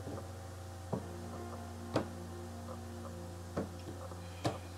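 Playing cards are laid down on a table with soft taps.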